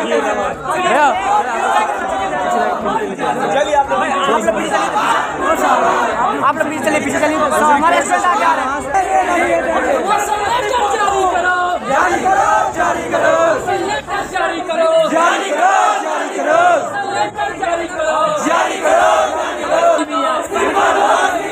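A young man speaks loudly and with animation to a crowd.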